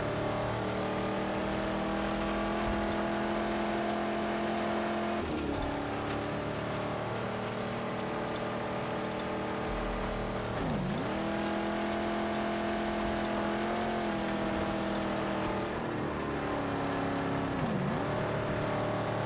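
A car engine roars steadily, dipping briefly as the gears shift.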